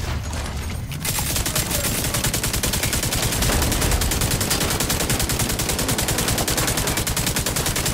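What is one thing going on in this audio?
Automatic gunfire rattles rapidly and steadily.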